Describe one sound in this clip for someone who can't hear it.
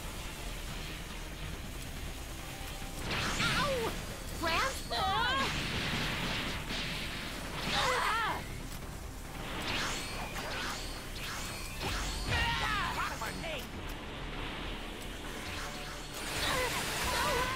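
Energy blasts whoosh and explode in bursts.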